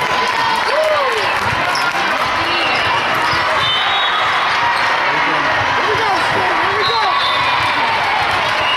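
Young girls chatter and call out in a large echoing hall.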